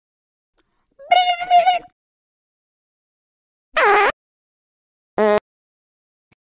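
A cartoon cat squeals and chatters in a high voice.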